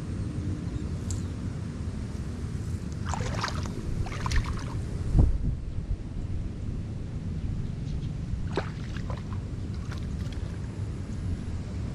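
Hands scrape and pat loose soil close by.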